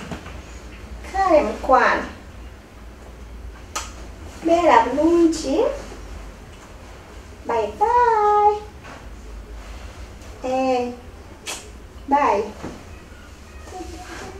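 A woman talks on a phone in short bursts.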